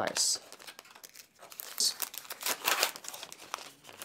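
Gauze rustles as it is handled.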